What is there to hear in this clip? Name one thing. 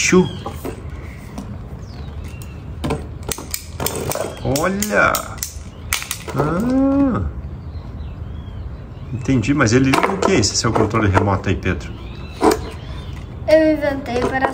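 Plastic parts click and knock as a fan is handled.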